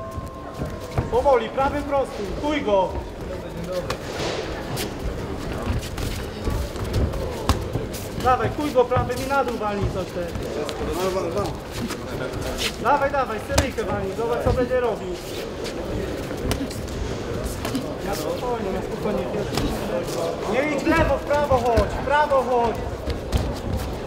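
Boxing gloves thud against a body and head guard in quick punches.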